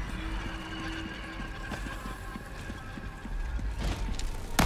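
Footsteps run quickly down stone stairs.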